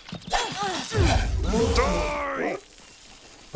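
A magic spell crackles and bursts.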